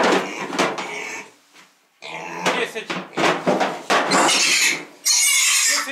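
A piglet squeals loudly.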